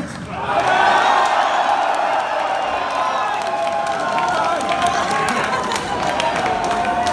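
A large crowd cheers and screams loudly at close range.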